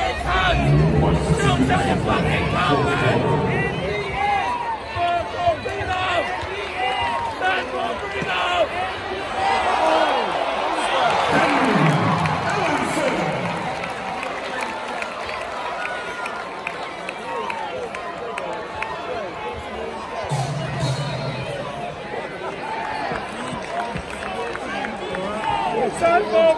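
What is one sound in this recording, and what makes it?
A large crowd chants along in a big echoing arena.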